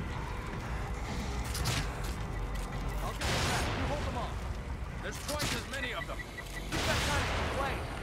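A crossbow fires with sharp thuds.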